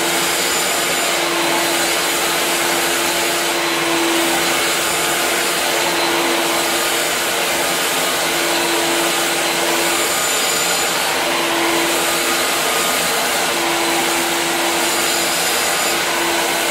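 A wet-dry shop vacuum runs with a steady whine.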